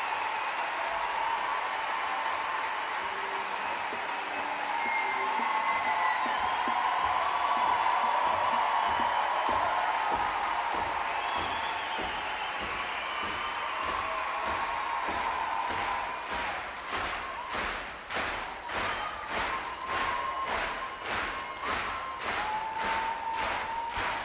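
A large crowd cheers and shouts in a large echoing hall.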